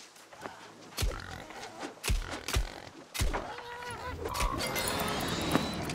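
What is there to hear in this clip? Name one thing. Heavy blows strike a wild boar.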